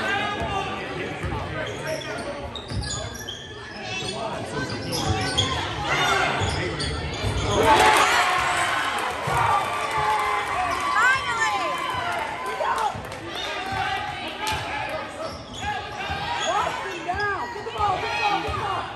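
A basketball bounces on a hard floor.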